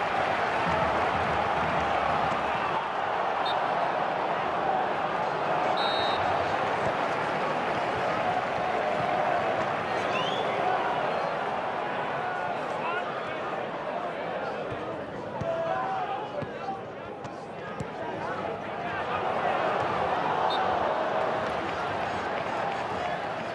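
A stadium crowd roars and chants steadily throughout.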